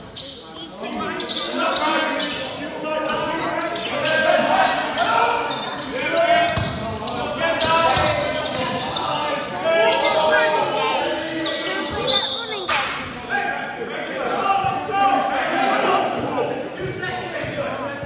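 Men and women nearby talk and cheer with animation in a large echoing hall.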